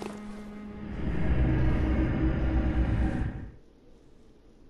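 A shimmering, swirling magical whoosh swells up loudly and then cuts away.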